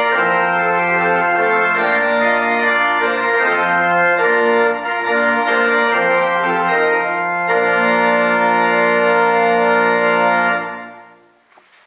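A pipe organ plays sustained chords in a reverberant hall.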